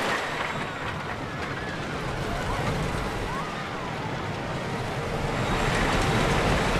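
A roller coaster car rumbles and clatters along wooden tracks, growing louder.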